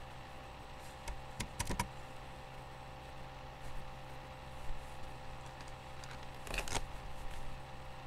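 A young man speaks quietly close to a computer microphone.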